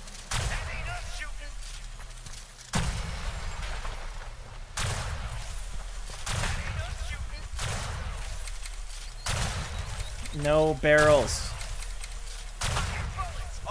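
Gunshots boom loudly in quick bursts.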